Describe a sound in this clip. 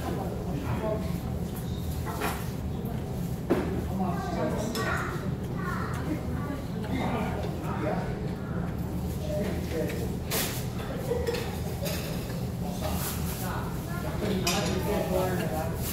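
Metal tongs click against plates.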